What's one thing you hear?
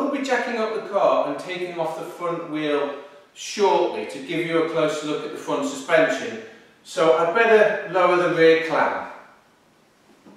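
A man speaks calmly and clearly to the listener, close by.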